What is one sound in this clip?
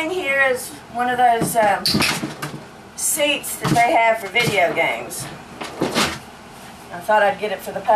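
A rocking chair thumps against the floor.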